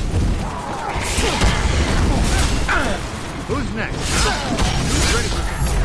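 Blows thud and clatter as a fighter strikes at a skeleton.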